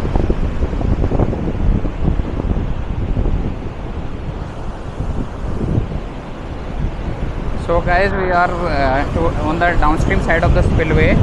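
Water rushes and churns below.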